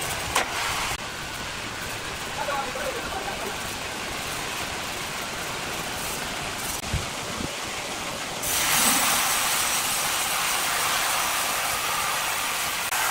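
A large band sawmill runs with a steady, noisy hum outdoors.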